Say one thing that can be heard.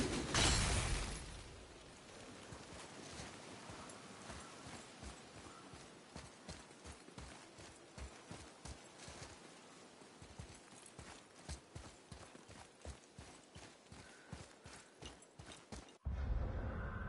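Footsteps thud quickly on grass and soft ground.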